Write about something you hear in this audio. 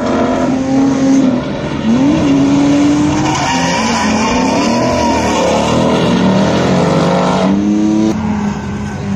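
Tyres squeal loudly as a car drifts.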